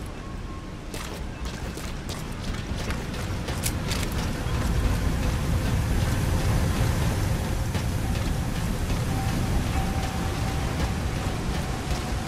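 Footsteps clang quickly on metal stairs and walkways.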